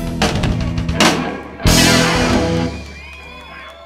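A live band plays a loud chord through loudspeakers and lets it ring out.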